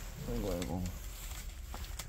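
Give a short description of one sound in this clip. A cat scratches its claws on a scratching post.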